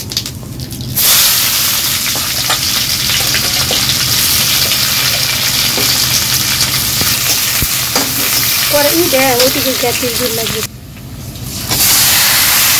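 Onions hiss loudly as they drop into hot oil.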